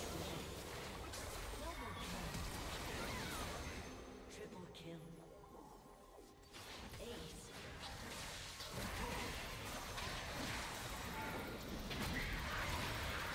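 Game characters' attacks clash with sharp hits.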